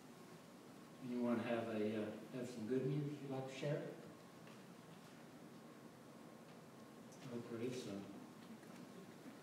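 An elderly man speaks calmly through a microphone in a large echoing room, with pauses between phrases.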